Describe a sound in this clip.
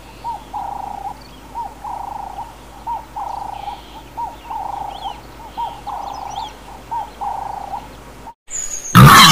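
A dove coos repeatedly in a soft, rhythmic call.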